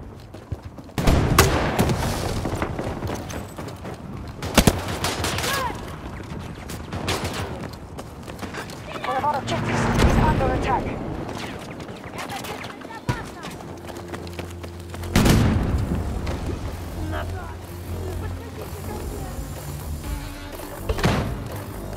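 Gunshots and blasts boom nearby.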